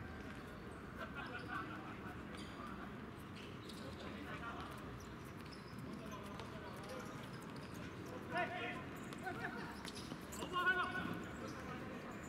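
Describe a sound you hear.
Young men shout to each other during a game outdoors.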